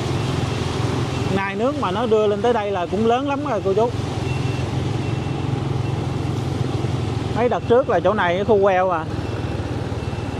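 A motorbike engine hums steadily close by.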